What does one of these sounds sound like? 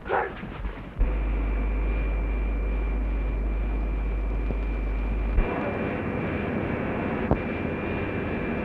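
An electrical machine hums steadily.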